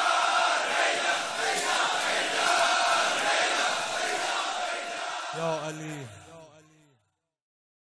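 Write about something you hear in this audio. A large crowd of men chants loudly in unison in an echoing hall.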